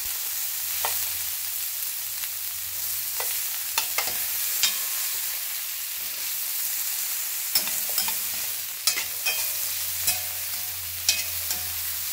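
Onions sizzle steadily in a hot pan.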